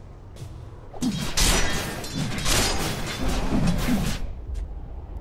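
Game spell effects and combat sounds crackle and burst.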